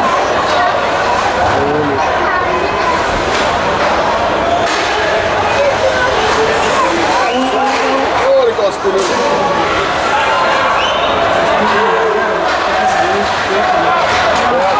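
Men shout and call out across an echoing rink.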